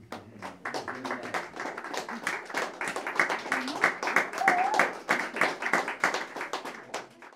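A second saxophone plays free jazz.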